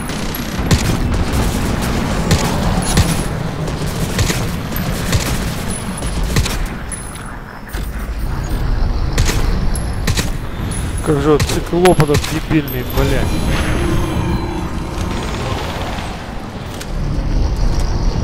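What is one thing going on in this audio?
Rifle shots ring out one after another.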